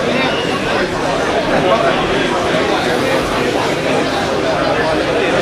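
A large crowd of men and women chatters loudly in a big echoing hall.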